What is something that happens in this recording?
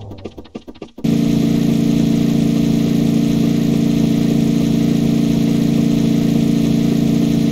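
A cartoonish car engine hums loudly and steadily.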